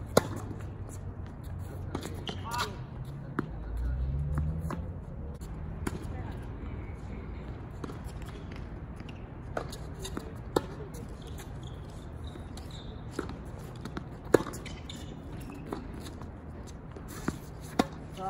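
Tennis balls pop off racquets.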